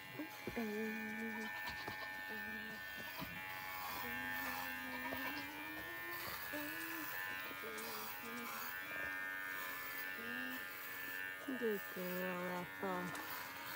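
Electric clippers buzz steadily.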